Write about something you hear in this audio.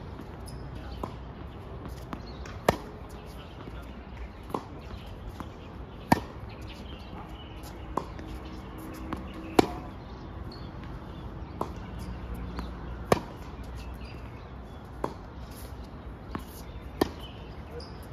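Tennis rackets hit a ball back and forth outdoors.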